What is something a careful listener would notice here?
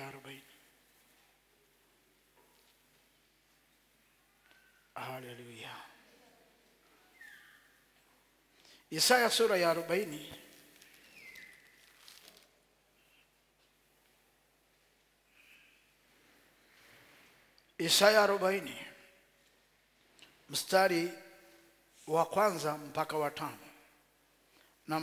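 A man preaches into a microphone in short bursts, with long pauses, in a reverberant hall.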